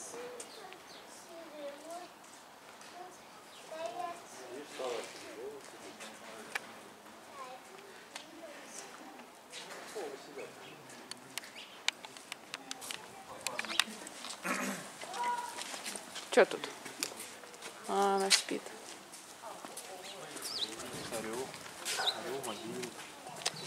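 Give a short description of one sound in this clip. A young child talks and calls out nearby.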